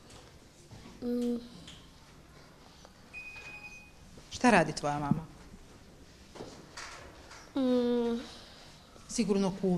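A young girl speaks in short, lively bursts close by.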